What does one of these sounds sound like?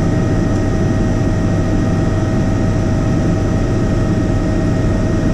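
A helicopter engine and rotor drone loudly and steadily inside the cabin.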